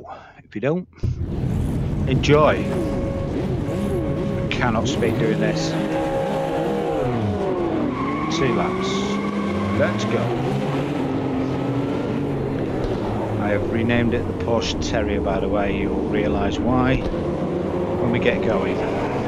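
Racing car engines roar and rev loudly.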